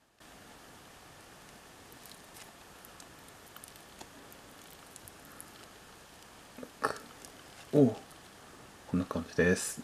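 A soft bun tears apart.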